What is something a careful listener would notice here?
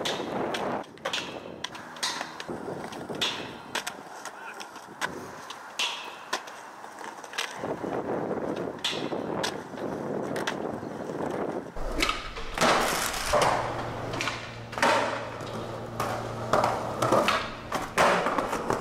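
A skateboard clacks against the ground.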